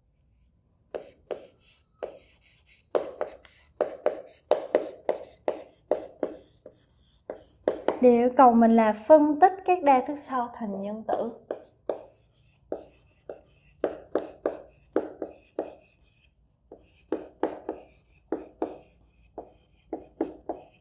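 Chalk taps and scrapes on a board in short strokes.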